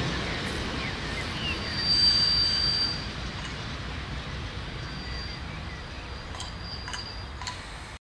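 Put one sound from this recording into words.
A small railcar rumbles along the track in the distance.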